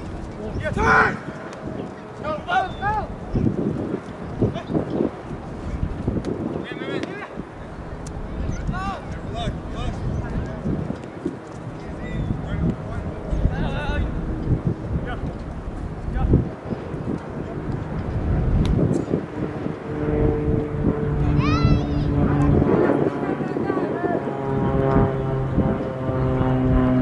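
Young women shout to each other across an open field, some distance away.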